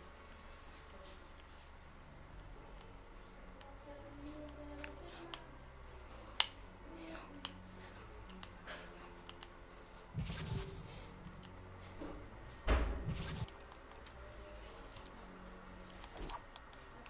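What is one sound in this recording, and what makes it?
Soft menu clicks tick as pages flip.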